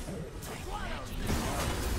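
A magic spell whooshes in a video game.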